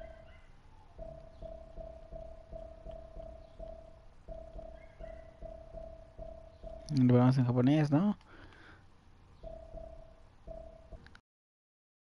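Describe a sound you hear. Short electronic menu tones beep over and over in quick succession.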